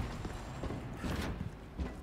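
Footsteps clank up metal stairs.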